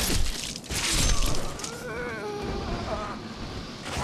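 A blade swings and strikes with a sharp hit.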